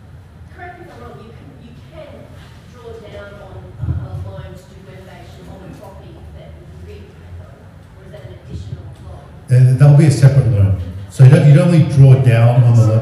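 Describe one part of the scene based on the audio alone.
A man speaks to an audience, with a sudden louder stretch near the end.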